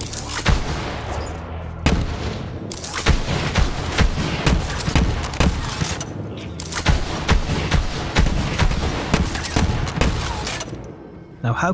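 An energy gun fires rapid crackling electric bursts.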